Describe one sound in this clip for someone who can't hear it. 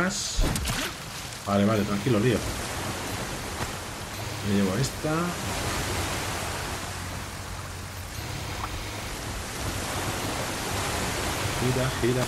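Water splashes and churns around a moving rowing boat.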